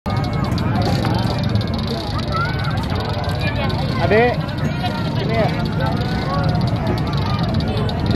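A large outdoor crowd chatters and shouts all around.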